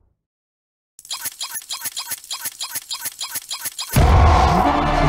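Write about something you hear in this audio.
A game meter clicks quickly as it fills.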